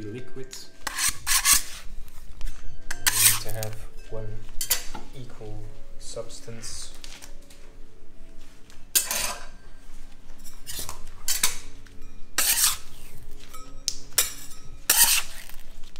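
A metal scraper scrapes across a steel counter.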